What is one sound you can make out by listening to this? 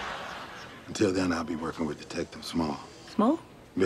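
A man speaks with surprise, close by.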